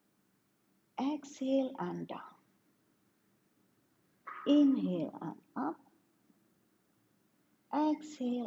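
A woman speaks calmly and clearly in short phrases, close to a microphone.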